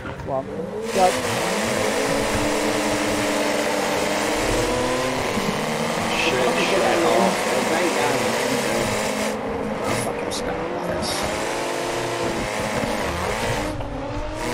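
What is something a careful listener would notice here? A car engine revs hard and roars as it speeds up.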